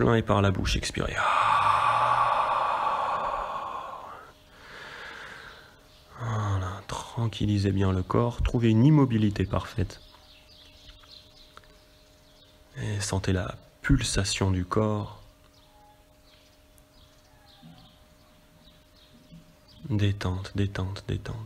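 A man speaks calmly and slowly.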